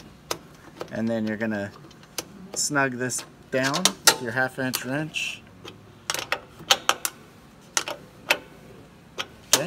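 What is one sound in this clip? A small metal fitting clicks and taps as a wrench tightens it.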